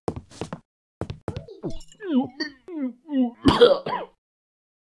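A drink is gulped down in loud swallows.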